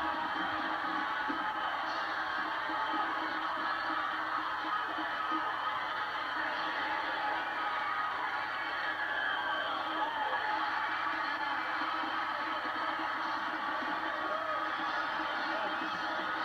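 A large crowd roars and cheers, heard through a television speaker.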